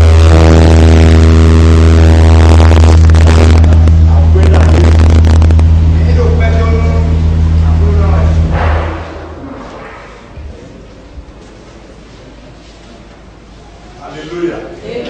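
A man speaks with animation, heard in a large echoing room.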